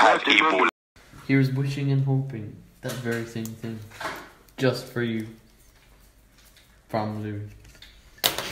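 A paper card rustles as it is opened.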